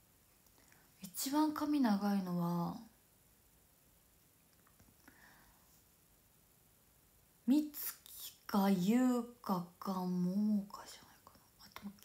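A young woman talks close to a microphone, calmly and with animation.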